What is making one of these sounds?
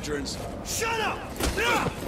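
A man snaps a short reply.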